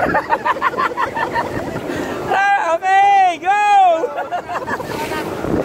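A man laughs loudly close by.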